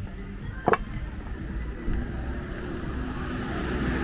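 People chat at outdoor tables nearby.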